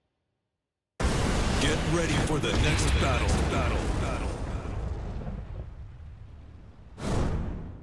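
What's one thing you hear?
A deep fiery blast roars and slowly fades.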